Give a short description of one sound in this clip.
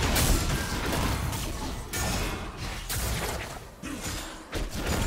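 Game spells and weapons clash and burst in a fight.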